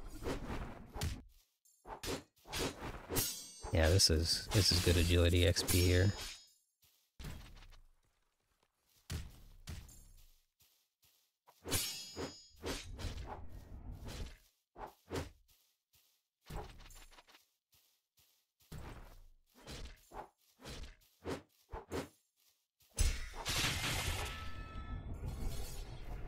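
Sword slashes whoosh and strike in a game fight.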